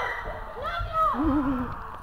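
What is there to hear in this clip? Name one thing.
Feet thud on gym mats.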